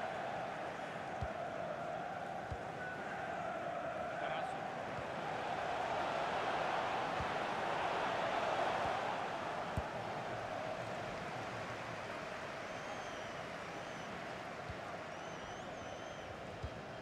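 A stadium crowd roars steadily, swelling and easing.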